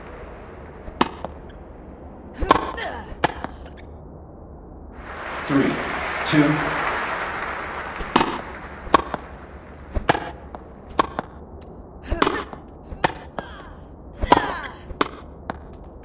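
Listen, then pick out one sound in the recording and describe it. A tennis ball is struck with a racket again and again with sharp thwacks.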